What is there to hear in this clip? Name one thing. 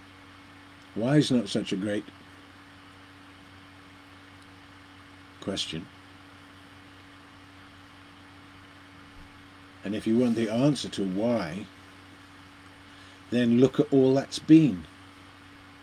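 An elderly man speaks calmly and slowly, close to the microphone, with long pauses.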